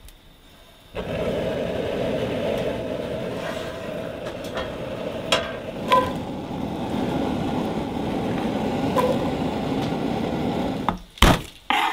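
Onions sizzle and fry in hot oil.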